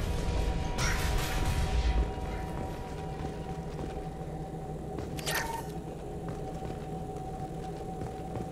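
Heavy armoured footsteps thud on a hard floor.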